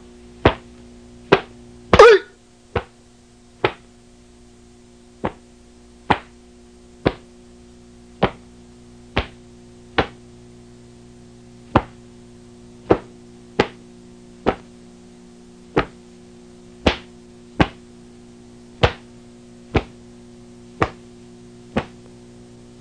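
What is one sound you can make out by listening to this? A cloth uniform snaps sharply with each quick strike and kick.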